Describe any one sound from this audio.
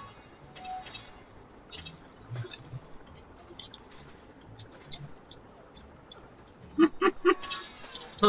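Quick chimes and thuds sound in short bursts.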